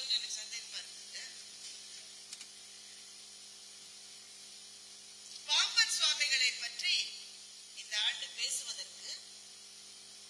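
A middle-aged woman speaks through a microphone in short phrases.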